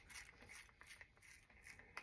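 A small paint roller rolls back and forth.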